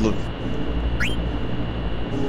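A short rising menu chime sounds.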